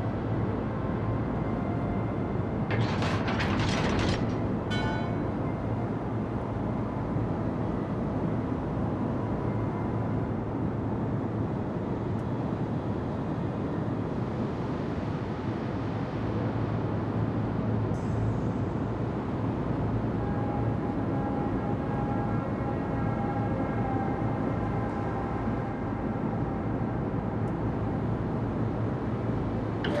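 A large ship's engine hums steadily.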